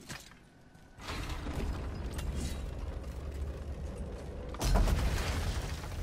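A heavy wooden gate grinds open with a deep rumble.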